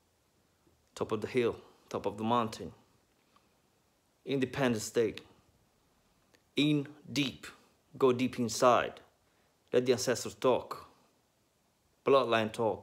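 A young man speaks calmly and close up.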